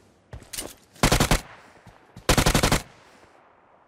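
Gunfire bursts out in short, loud volleys.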